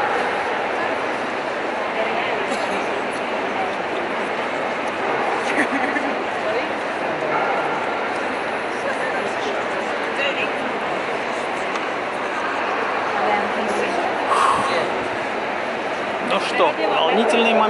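A large crowd murmurs and chatters throughout a big echoing hall.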